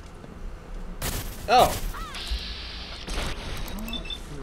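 A laser gun fires with sharp zaps.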